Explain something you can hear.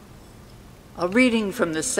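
An elderly woman begins to sing into a microphone in a large echoing hall.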